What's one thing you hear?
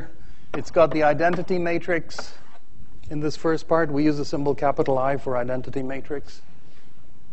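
A man lectures calmly in a large echoing hall, heard through a microphone.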